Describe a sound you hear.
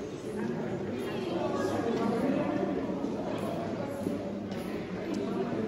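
A crowd of visitors murmurs and chatters in an echoing hall.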